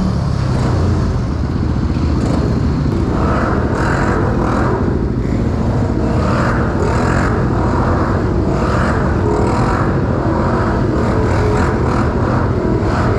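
A dirt bike engine revs loudly, echoing under a concrete underpass.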